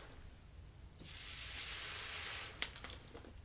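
A small torch hisses steadily close by.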